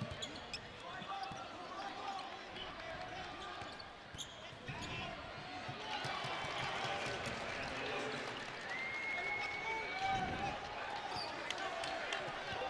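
Basketball sneakers squeak sharply on a hardwood court.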